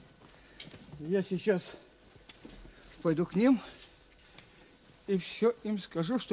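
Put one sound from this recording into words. An elderly man speaks slowly, in short phrases with pauses, close by.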